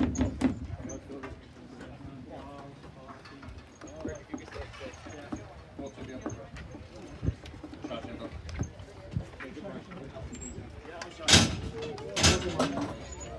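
Men talk and call out to each other outdoors.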